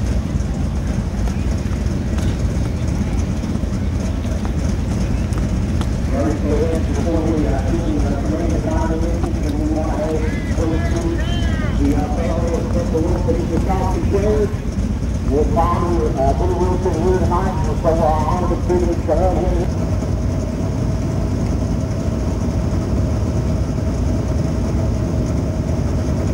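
Race car engines roar and rumble loudly.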